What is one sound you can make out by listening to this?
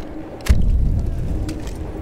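A gun fires a single loud shot nearby.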